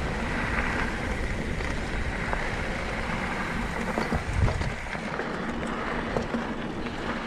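Bicycle tyres roll and crunch steadily over a dirt trail.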